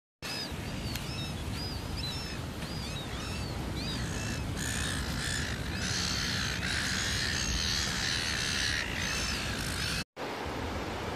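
Many shorebirds chirp and cheep.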